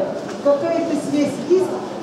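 A middle-aged woman gasps aloud.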